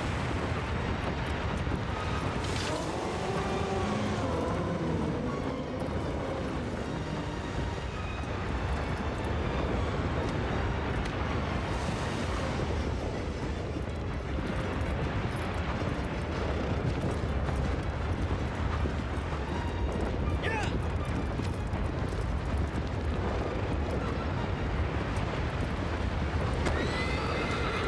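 Strong wind blows and roars steadily.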